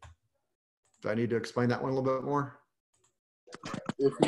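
A man speaks calmly and closely through a microphone, as if on an online call.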